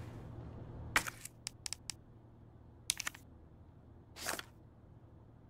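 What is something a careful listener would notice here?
Soft menu clicks tick a few times.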